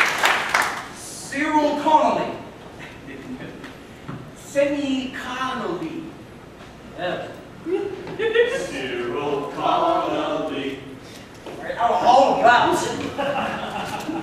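A young man speaks loudly with animation in a large echoing hall.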